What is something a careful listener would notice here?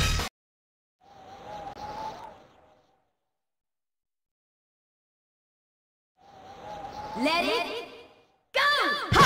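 Swooshing transition effects sweep in and fade out.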